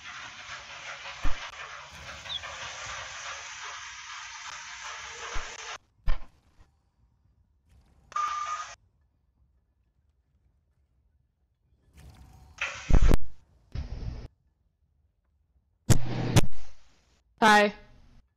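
Magic spells whoosh and crackle in short bursts.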